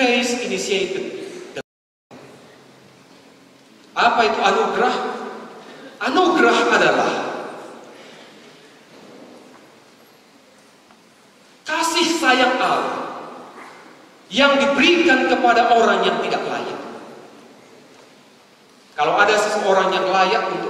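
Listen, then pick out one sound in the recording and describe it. A man speaks with animation into a microphone, in bursts, echoing in a large hall.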